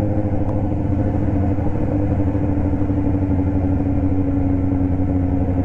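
A motorcycle engine hums steadily close by as it rides along.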